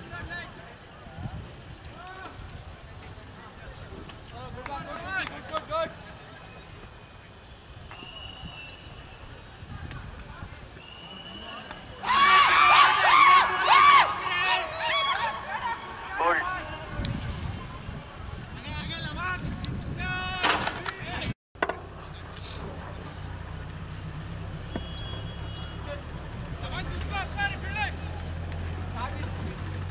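Young men chatter and call out in the distance.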